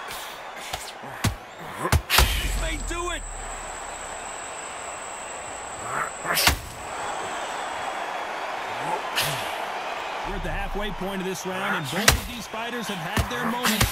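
Gloved punches land with heavy thuds.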